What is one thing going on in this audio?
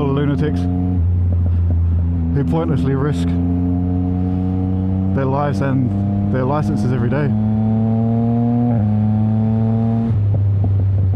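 A motorcycle engine revs up and drops as gears shift.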